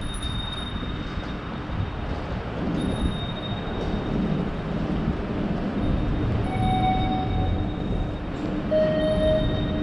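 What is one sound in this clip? Footsteps tap on a hard floor in a large echoing hall.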